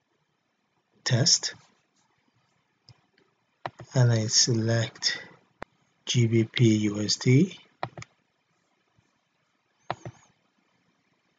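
An adult man speaks calmly, close to a microphone.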